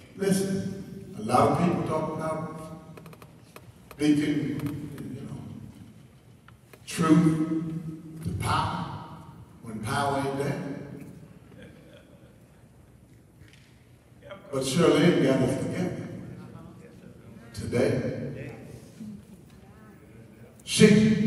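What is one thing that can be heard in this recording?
A man preaches with feeling into a microphone, heard through loudspeakers in an echoing hall, in bursts with pauses.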